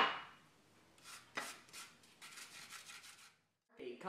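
A knife scrapes across a soft tortilla.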